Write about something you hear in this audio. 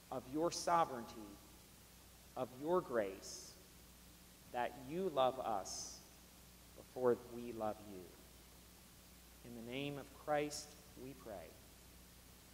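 A middle-aged man reads aloud calmly, in short phrases with pauses.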